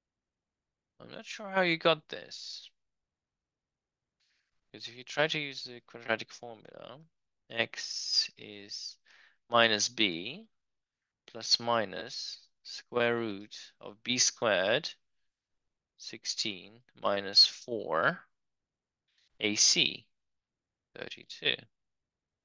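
A man speaks calmly and close to a microphone, explaining in short phrases.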